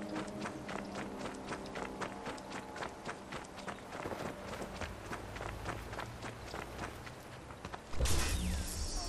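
Footsteps crunch quickly over dry grass and dirt.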